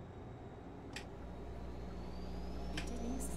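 A turn signal ticks.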